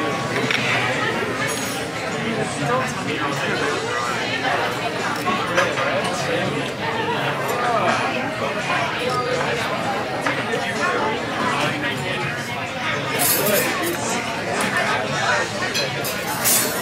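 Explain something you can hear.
A crowd of people chatters all around, heard close by.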